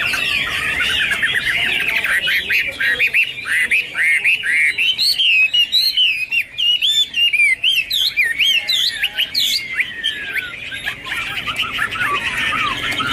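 A songbird sings a loud, varied song of rapid whistles and trills close by.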